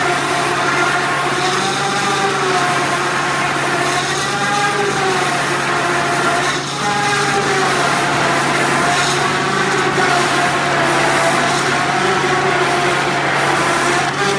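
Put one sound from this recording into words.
A machine debarks a log with a steady, loud whining grind that wavers in pitch.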